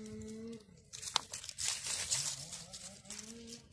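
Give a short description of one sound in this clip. Dry leaves rustle and crackle under a hand.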